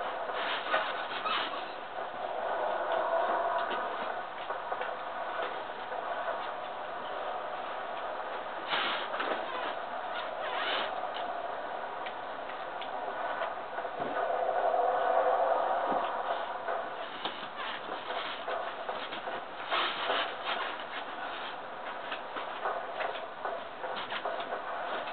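Armoured footsteps clatter steadily on stone through a television speaker.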